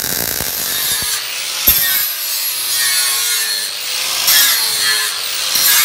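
An angle grinder whines as it grinds metal.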